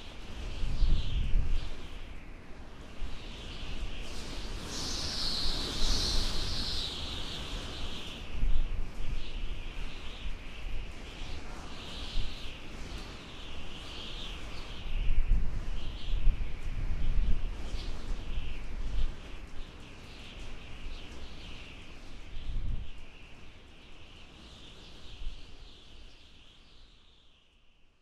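Ocean waves break and rumble on the shore.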